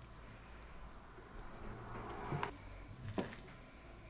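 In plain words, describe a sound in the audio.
A ladle taps against a china plate.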